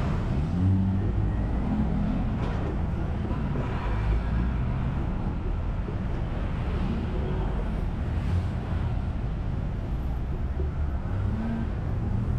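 Cars drive past close by, whooshing on the road.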